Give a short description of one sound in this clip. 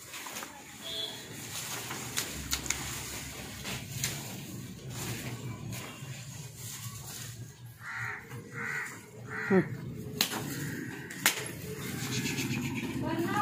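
Hooves shuffle and thud on a hard floor.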